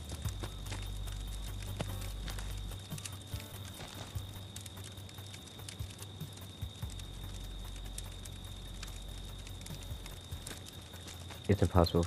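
Footsteps crunch slowly over leaves and dirt.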